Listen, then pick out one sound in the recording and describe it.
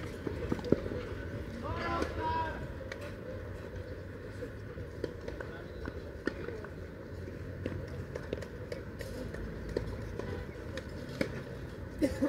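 Tennis balls are struck with a racket and bounce outdoors.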